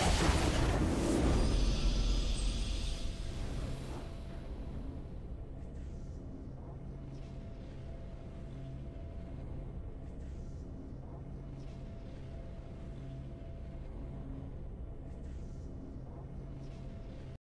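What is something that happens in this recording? Soft game music hums steadily.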